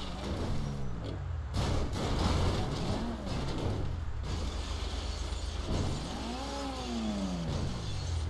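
A car crashes and tumbles with heavy thuds and scrapes.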